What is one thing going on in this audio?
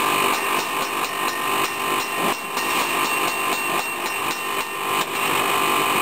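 A hammer rings rapidly on a metal anvil.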